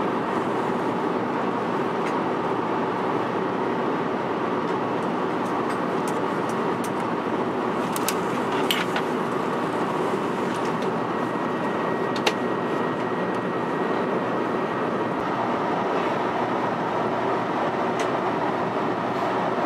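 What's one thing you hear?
A steady, low roar of an aircraft cabin in flight fills the air.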